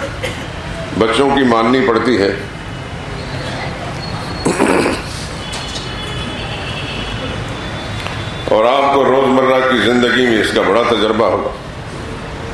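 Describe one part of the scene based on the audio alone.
A middle-aged man speaks slowly and solemnly into a microphone, with pauses, heard through a loudspeaker in a reverberant hall.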